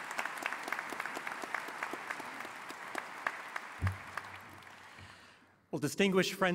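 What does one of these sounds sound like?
An audience applauds in a large hall, the clapping slowly fading.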